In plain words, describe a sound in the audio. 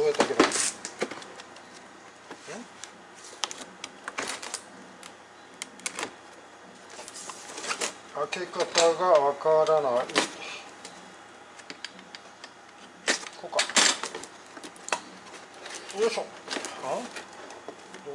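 A cardboard box scrapes and rustles as hands handle it.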